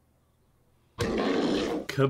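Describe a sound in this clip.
A blade slashes with harsh swooshing hits.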